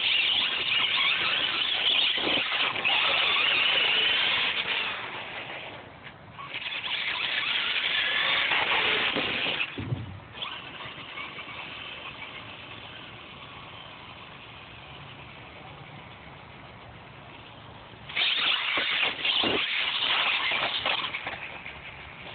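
A remote-control car's electric motor whines loudly as it speeds past.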